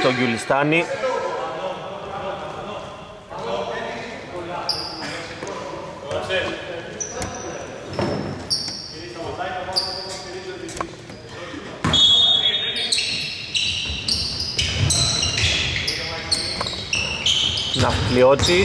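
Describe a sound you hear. Men call out and talk to each other across an echoing hall.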